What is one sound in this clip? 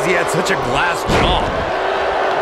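A heavy body slams onto the wrestling ring mat with a thud.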